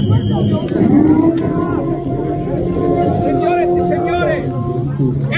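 A crowd of people talks and calls out outdoors.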